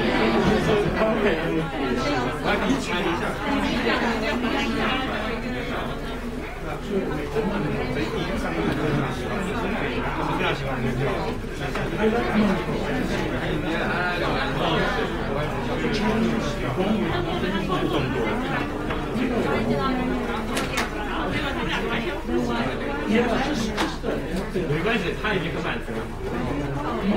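A crowd of men and women chat and talk over one another.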